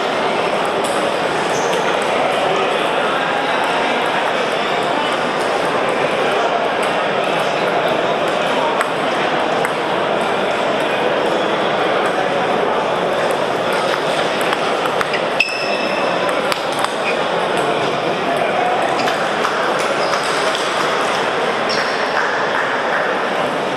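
A crowd of men and women chatters steadily in a large echoing hall.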